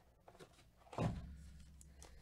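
A stack of card packs thumps down on a surface.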